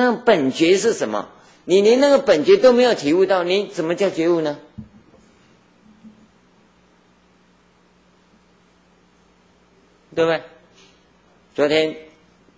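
An elderly man speaks calmly into a microphone, pausing now and then.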